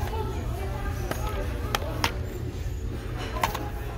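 A plastic game case snaps open.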